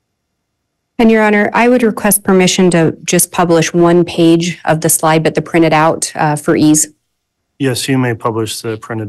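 A woman speaks steadily into a microphone, heard through an online call.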